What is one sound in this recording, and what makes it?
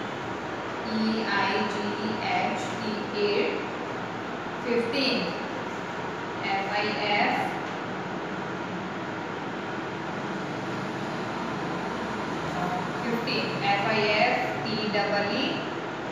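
A woman speaks calmly, close by, as if teaching.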